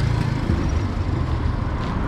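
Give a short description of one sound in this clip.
A motorbike engine hums along a street nearby.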